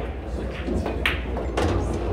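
A pool cue strikes a ball with a sharp tap.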